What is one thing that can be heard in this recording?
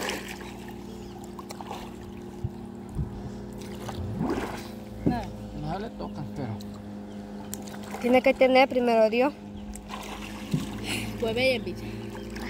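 Water splashes as a person kicks near the surface.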